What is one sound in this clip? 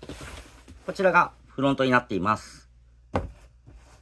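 A cardboard box scrapes and bumps on a table.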